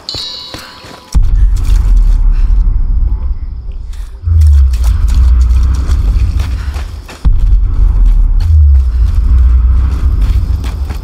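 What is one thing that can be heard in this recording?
Footsteps crunch on a forest floor.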